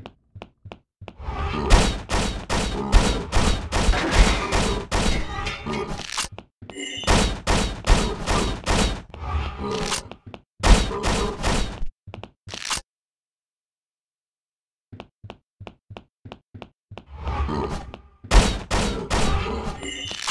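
Gunshots fire in rapid, loud bursts.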